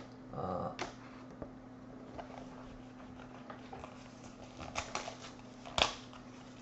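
Trading cards rustle and click as hands shuffle through them.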